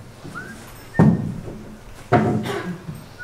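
Heavy thuds ring out on a wooden stage in a large echoing hall.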